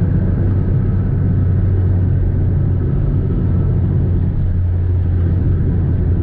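A car engine hums steadily from inside the cabin.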